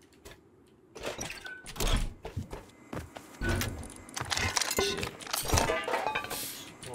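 Items rattle and clink as they are shuffled about.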